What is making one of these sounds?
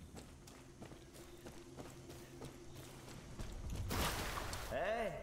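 Footsteps crunch steadily on dirt and grass.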